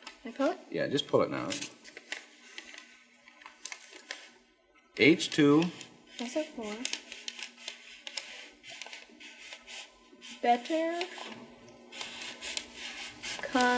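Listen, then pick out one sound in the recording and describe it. A strip of paper slides and rustles softly.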